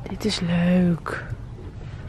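A hand brushes over a shaggy fur cushion.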